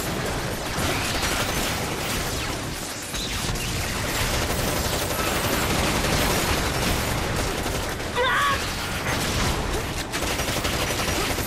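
Rapid gunfire blasts out.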